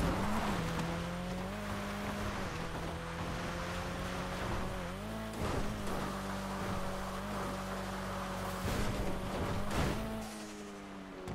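A car engine drones steadily and shifts in pitch.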